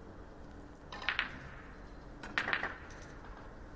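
Snooker balls click as they are set down on the table.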